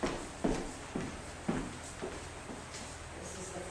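Shoes tap and shuffle on a wooden floor.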